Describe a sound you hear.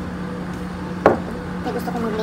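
A ceramic mug is set down on a table with a knock.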